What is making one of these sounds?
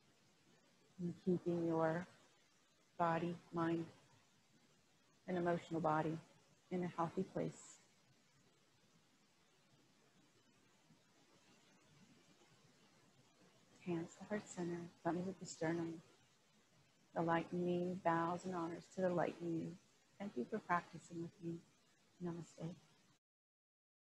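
A woman speaks calmly and slowly close to a microphone.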